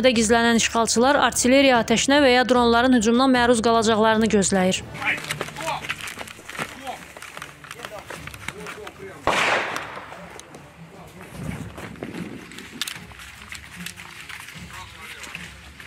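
Boots crunch quickly on gravel and dirt as people run.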